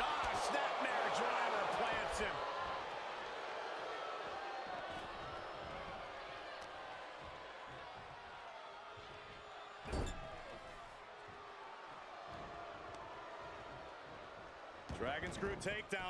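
A large crowd cheers loudly in a big arena, then slowly quiets.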